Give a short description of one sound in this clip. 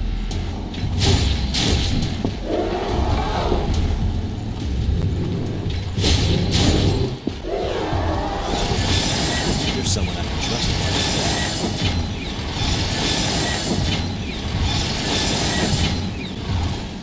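Swords clash and slash with sharp metallic hits.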